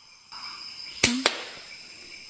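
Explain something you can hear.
A rifle fires a single sharp shot close by.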